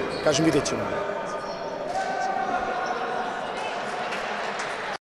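A group of men clap their hands in an echoing hall.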